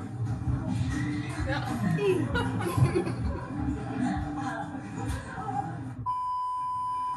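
Upbeat pop music plays.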